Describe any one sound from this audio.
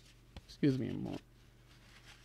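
A young man speaks briefly into a nearby microphone.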